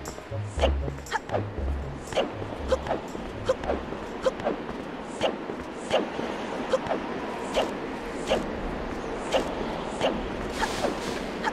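Footsteps run along a dirt path.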